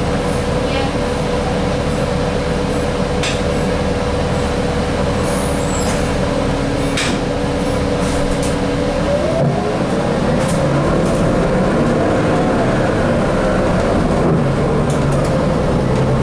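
Loose fittings on a bus rattle and clatter.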